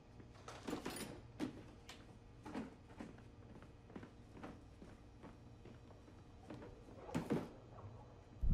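Dishes clatter and rattle in a plastic tub.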